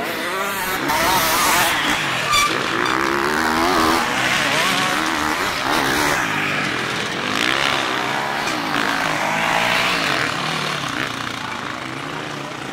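Dirt bike engines rev loudly and whine as the bikes race past.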